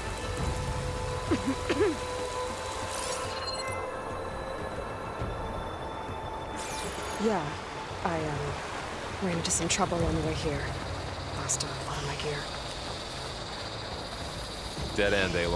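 Footsteps rustle through grass and leaves.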